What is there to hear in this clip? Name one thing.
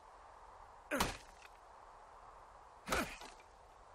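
An axe thuds into a tree trunk.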